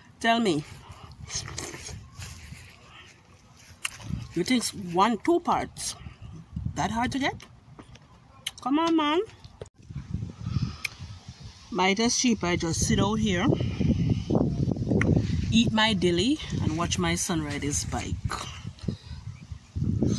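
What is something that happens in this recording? A woman chews and bites into food.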